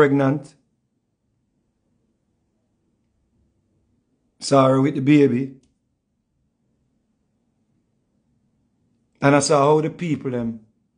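A man speaks close up in short bursts with pauses between.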